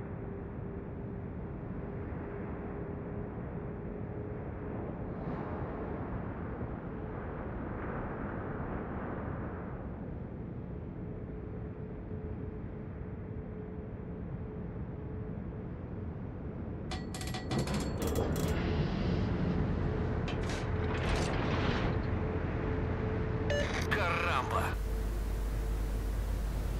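A large ship's engine rumbles steadily.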